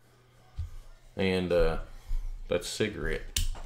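A folding knife blade snaps into place with a click.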